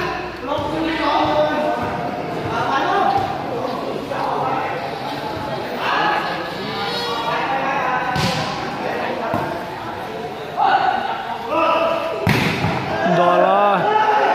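Men shout and chatter in a large echoing hall.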